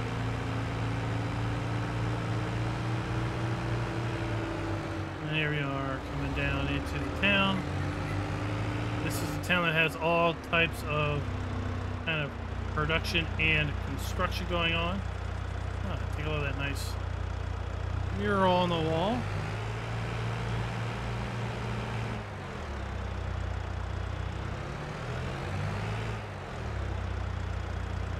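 A small vehicle engine hums steadily as it drives along.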